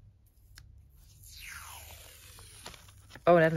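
Sticky tape peels off a roll with a rasping sound.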